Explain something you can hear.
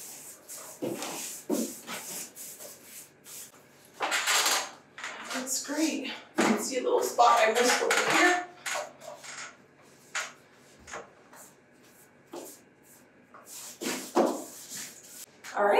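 A cloth rubs and scrubs against a wall.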